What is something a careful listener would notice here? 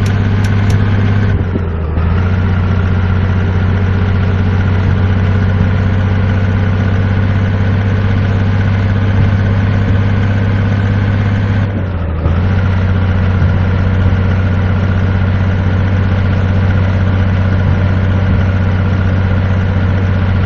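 A truck engine hums steadily, with brief dips as gears change.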